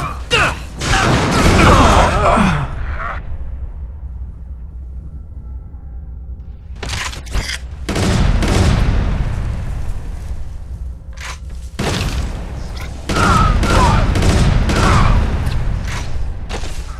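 Gunshots and explosions boom in a video game.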